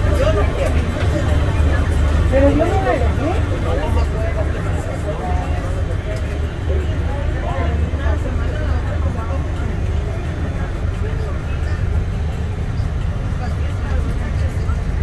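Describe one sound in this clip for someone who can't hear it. Passengers murmur and chat nearby in a crowded carriage.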